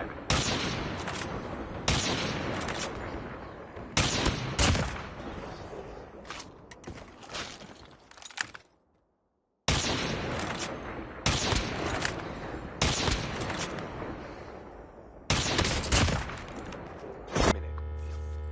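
Sniper rifle shots boom one after another, each with a ringing echo.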